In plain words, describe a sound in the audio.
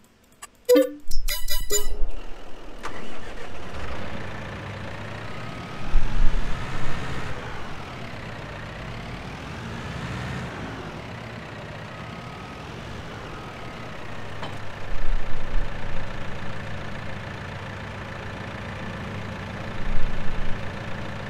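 A loader's engine hums steadily and revs up at times.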